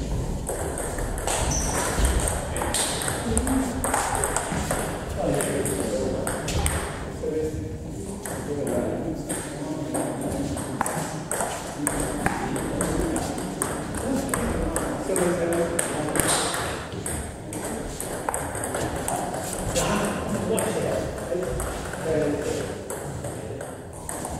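Men talk in the background of a large echoing hall.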